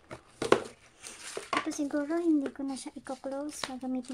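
Plastic wrapping crinkles as it is pulled off a wallet.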